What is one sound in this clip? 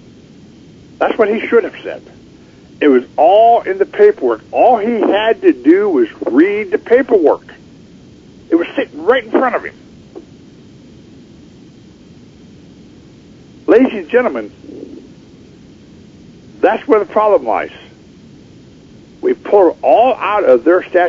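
A man talks with animation over a phone line, in bursts with pauses.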